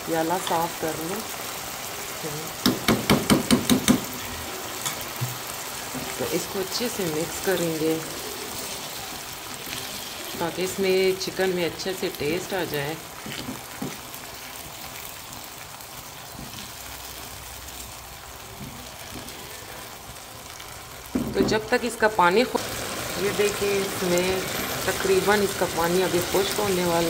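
Food sizzles gently in a pan.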